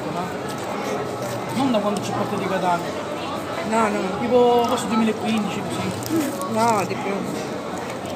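Paper wrappers rustle and crinkle.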